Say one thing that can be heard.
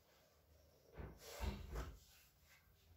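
A neck joint gives a quick crack during an adjustment.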